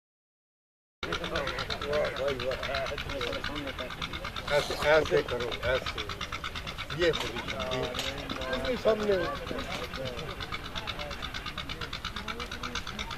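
Several men talk with each other outdoors.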